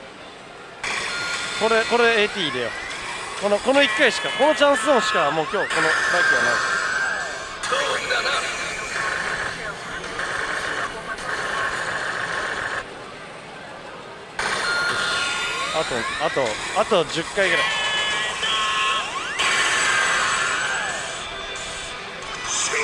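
A slot machine plays loud electronic jingles and sound effects.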